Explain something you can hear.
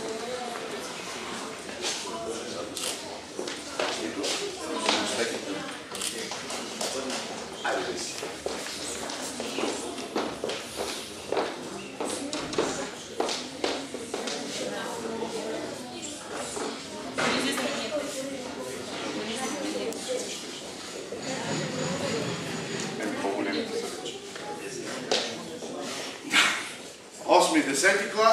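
People chatter in a large, echoing hall.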